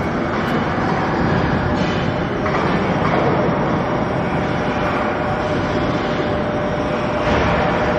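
Industrial machinery rumbles and clatters steadily in a large hall.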